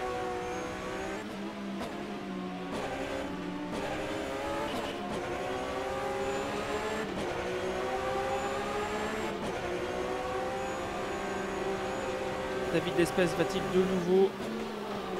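A race car engine roars steadily, its pitch rising and dropping as it shifts gears.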